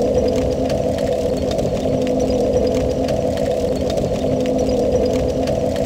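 A fire roars steadily.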